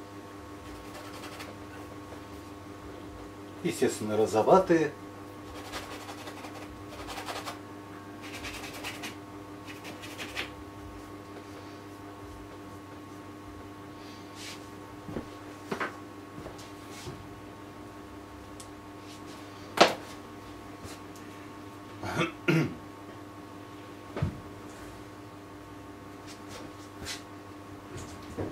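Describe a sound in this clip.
A brush scrapes and taps softly on canvas.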